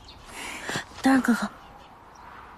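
A young woman speaks gently, close by.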